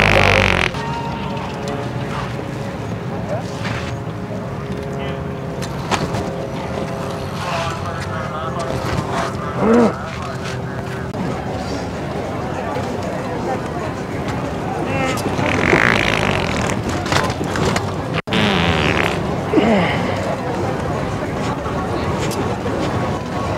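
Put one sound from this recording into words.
Footsteps shuffle on a wooden boardwalk.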